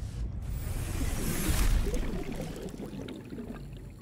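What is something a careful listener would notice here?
Water splashes and gushes away.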